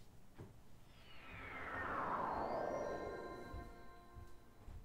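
A shimmering magical whoosh sweeps downward in pitch and fades.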